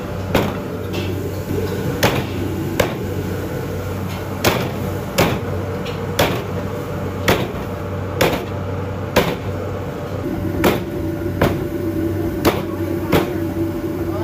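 A cleaver chops through meat and bone on a wooden block.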